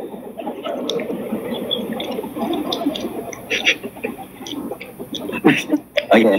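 A young man laughs over an online call.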